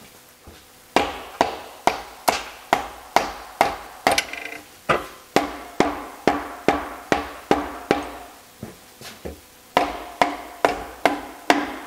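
A rubber mallet taps repeatedly on a metal engine case.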